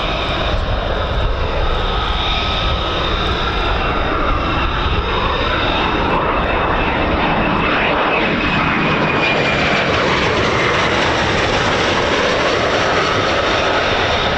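A jet engine roars loudly overhead.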